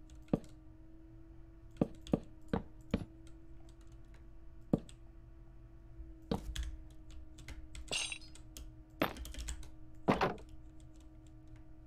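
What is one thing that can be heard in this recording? Blocks are placed with short, sharp knocks.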